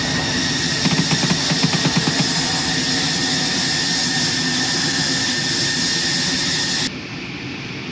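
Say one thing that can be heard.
Fires roar and crackle with a deep rumble.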